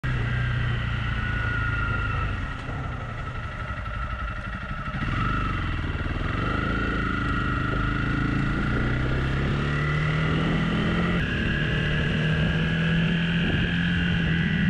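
A motorcycle engine hums and revs as the bike rides along.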